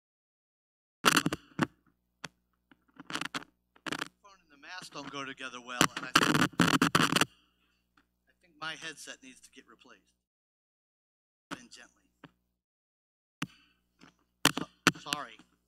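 An adult man speaks calmly with pauses, heard through a microphone.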